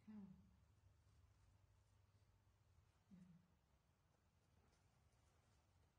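A paper diaper crinkles softly as hands handle it.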